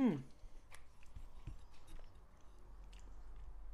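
A woman chews food close to a microphone.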